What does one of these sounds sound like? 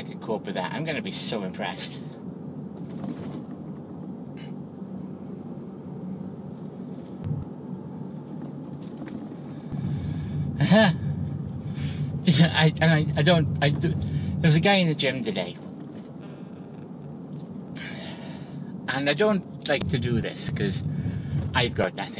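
A car engine hums steadily inside the cabin.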